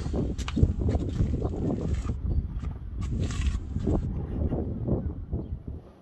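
A scraper scratches at paint on a boat's hull.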